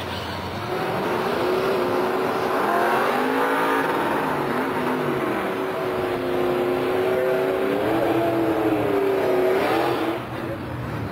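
Drag racing engines roar loudly, rising and falling in pitch as the cars speed down the track.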